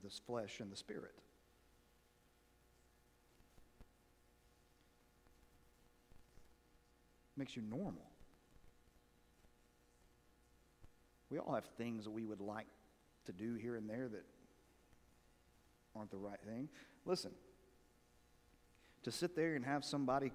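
A man speaks calmly through a microphone in a large echoing hall, with long pauses.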